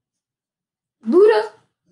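A young boy exclaims loudly close by.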